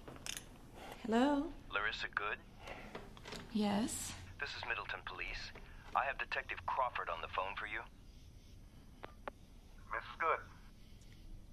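A woman speaks calmly into a phone handset.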